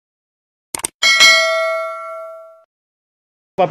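A bell chimes brightly and rings out.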